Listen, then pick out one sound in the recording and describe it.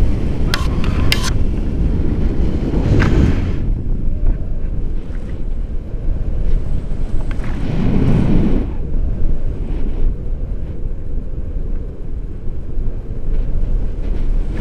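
Strong wind rushes and buffets loudly.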